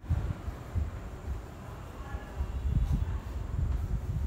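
Chalk scratches on a chalkboard.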